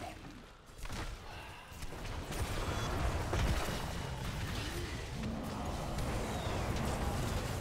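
Game spells and weapons blast and crackle in a busy fight.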